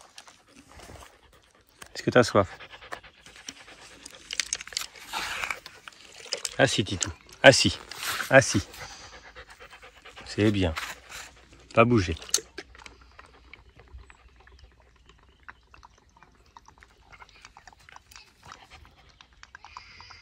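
A puppy pants.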